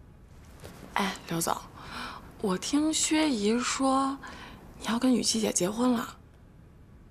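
A young woman speaks calmly, nearby.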